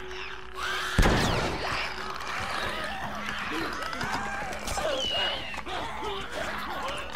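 A creature snarls and shrieks close by.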